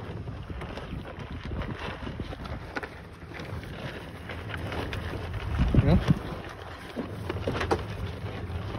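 Wind blows across open ground.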